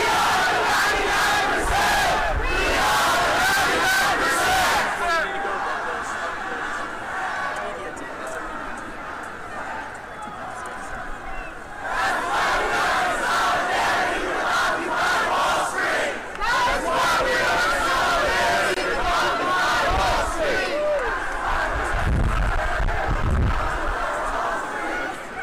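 A large crowd chants and shouts together outdoors.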